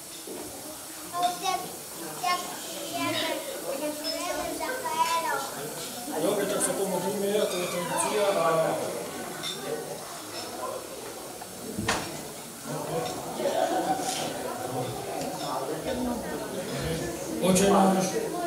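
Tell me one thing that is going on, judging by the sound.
A middle-aged man speaks with animation into a microphone, heard through loudspeakers in an echoing room.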